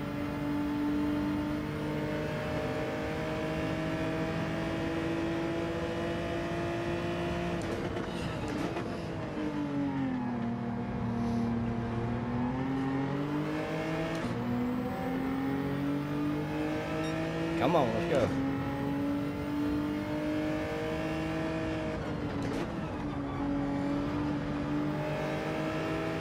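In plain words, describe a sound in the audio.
A racing car engine roars steadily, dropping in pitch while braking and climbing again with each gear.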